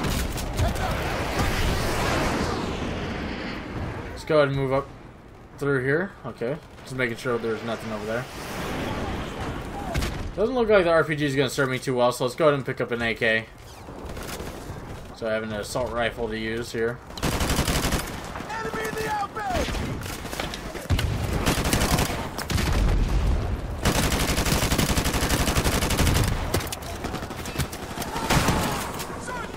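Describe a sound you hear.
Rifles fire in rapid bursts.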